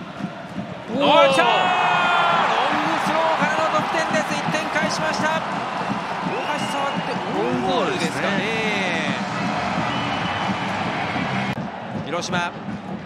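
A large stadium crowd roars loudly outdoors.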